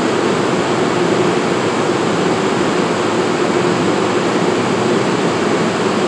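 A stopped train's engine hums steadily and loudly.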